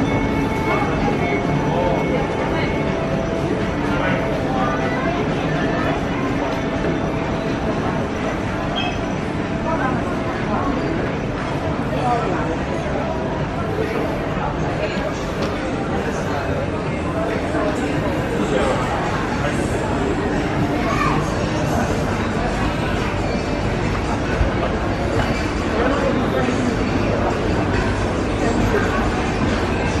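Many voices murmur and chatter in a busy echoing indoor hall.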